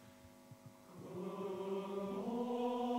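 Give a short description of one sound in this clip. A men's choir begins to sing together.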